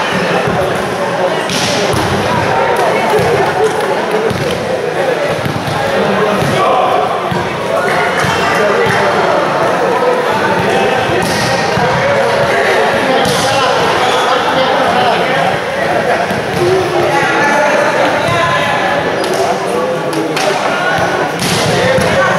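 A crowd of young men and women chatter and call out, echoing in a large hall.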